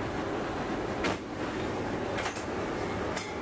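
Metal clanks as a heavy shell is loaded.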